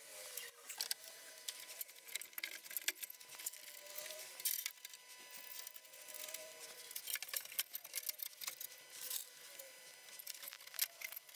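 Large wooden boards knock and rattle against a metal frame.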